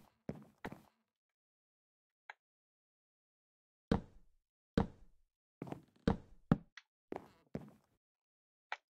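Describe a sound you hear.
Blocks thud and knock as they are placed one after another.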